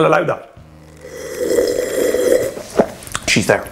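A man gulps a drink noisily.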